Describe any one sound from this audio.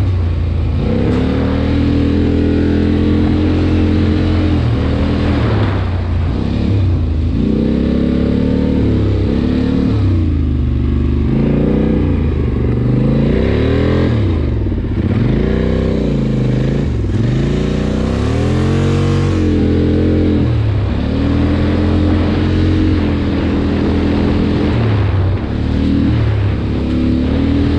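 Tall grass and brush swish against a vehicle.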